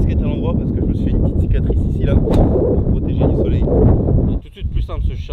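A man speaks with animation into a microphone outdoors.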